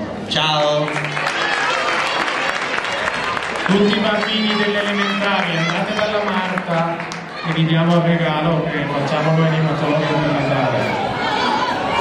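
A crowd of children sings loudly together.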